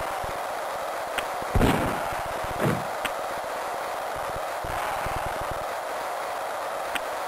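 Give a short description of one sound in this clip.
A crowd roars steadily in a game's electronic sound.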